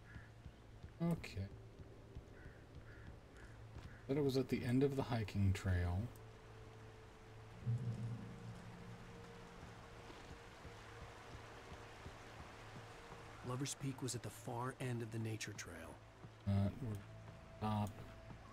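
A middle-aged man talks with animation, close to a microphone.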